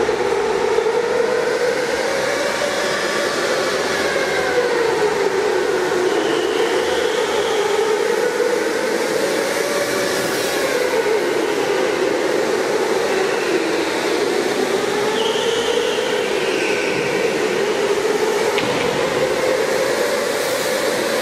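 Go-kart engines whine steadily, rising and falling in pitch as karts circle in a large echoing hall.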